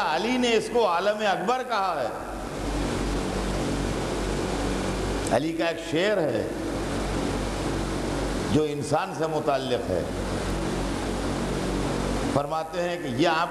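An elderly man chants loudly through a microphone in short, melodic phrases with pauses between them.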